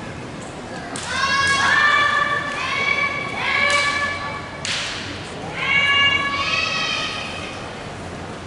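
Young women shout loud, high-pitched cries in a large echoing hall.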